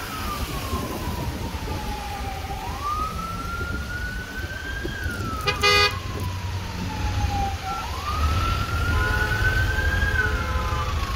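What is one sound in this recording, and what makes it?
Car engines rumble steadily in slow traffic close by.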